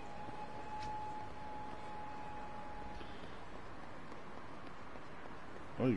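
Footsteps tap on pavement at a brisk pace.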